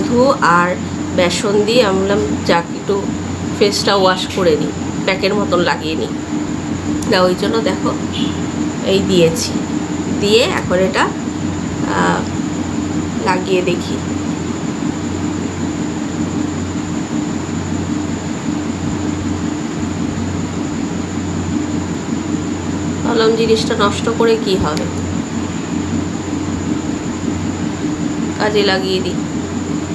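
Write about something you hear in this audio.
A woman talks calmly and close by.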